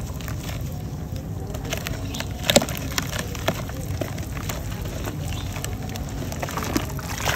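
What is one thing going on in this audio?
Water sloshes as hands squeeze soaked clumps.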